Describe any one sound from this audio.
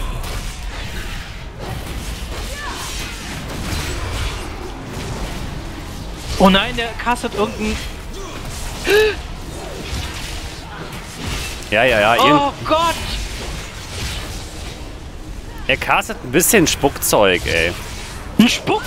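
Fantasy battle sounds of spells and blows play on.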